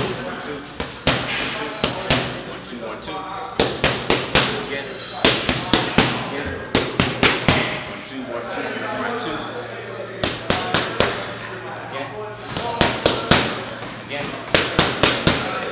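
Boxing gloves smack hard against punch mitts in quick bursts.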